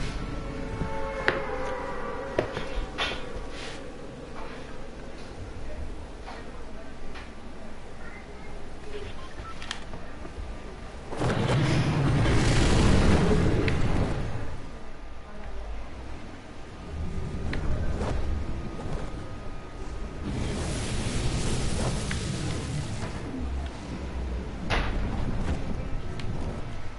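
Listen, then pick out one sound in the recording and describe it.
Wind rushes past loudly, swelling and easing.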